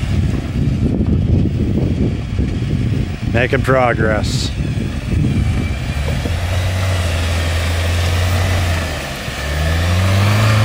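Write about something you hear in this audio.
An engine rumbles low as an off-road vehicle crawls slowly.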